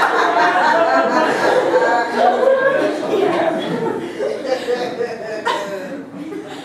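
An audience laughs and cheers in a small hall.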